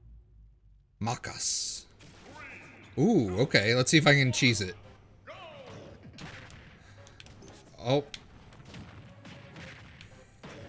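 Game sound effects whoosh and thump during a fight.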